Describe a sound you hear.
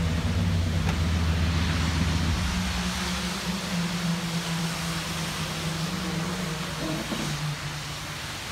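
A pickup truck's engine idles with a low, steady rumble.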